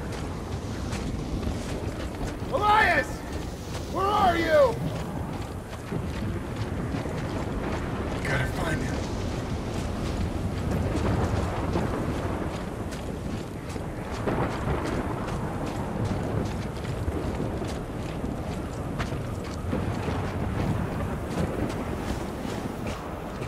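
Heavy boots crunch through snow.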